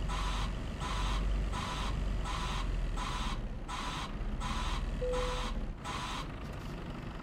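A reversing alarm beeps steadily as a truck backs up, then stops.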